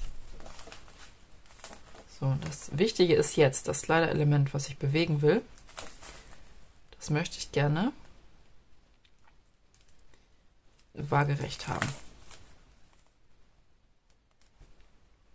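Paper rustles softly under hands.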